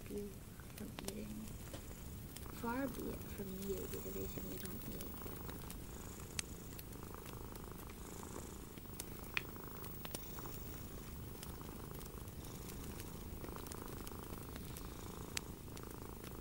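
Fingertips rub and crackle softly against a microphone.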